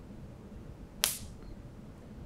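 A wire taps against a battery terminal with a sharp snap.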